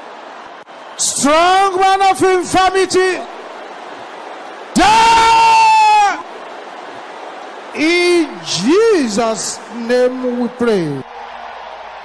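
A man preaches loudly and with animation into a microphone.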